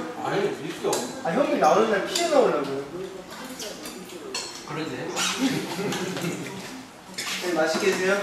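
Several young men talk and chatter close by.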